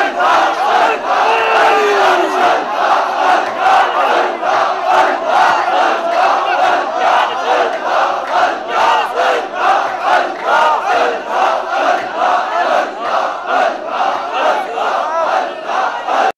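A large crowd of men chants loudly and with fervour.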